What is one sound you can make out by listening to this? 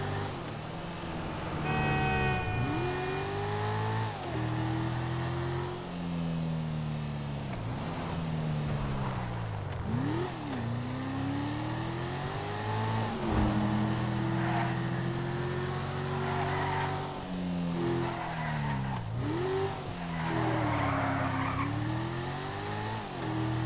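A sports car engine revs hard, rising and dropping in pitch as the gears shift.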